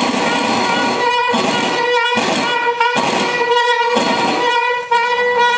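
A clarinet plays sustained, wavering notes in short phrases.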